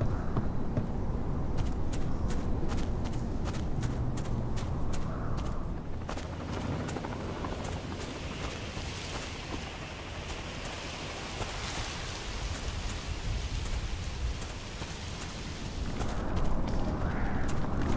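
Footsteps tread steadily across the ground.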